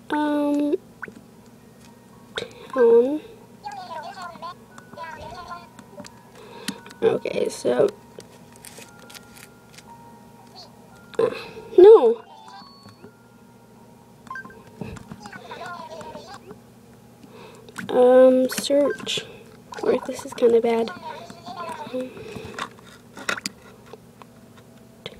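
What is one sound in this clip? A handheld game plays chirpy, babbling character sounds from its small speaker.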